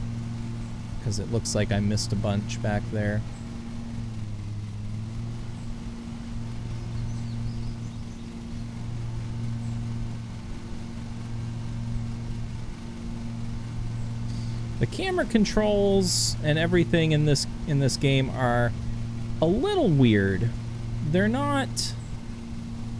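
A man talks with animation through a close microphone.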